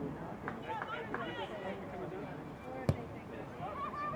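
A football is kicked hard.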